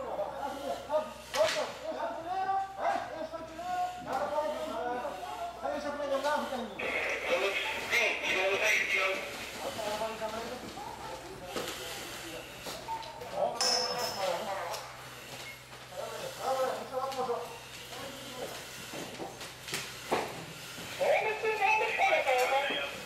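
A man talks nearby, calmly.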